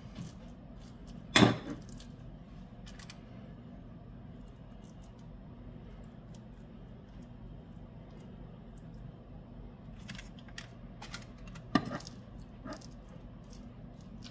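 A metal spoon scrapes and clinks against a cutting board.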